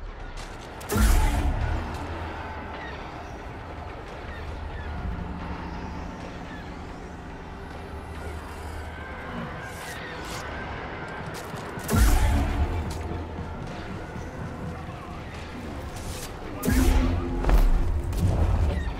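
Heavy blasts boom and crash.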